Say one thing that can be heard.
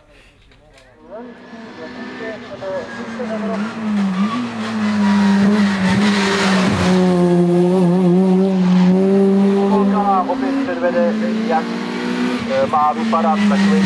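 A rally car engine roars loudly as it approaches and revs hard through the gears.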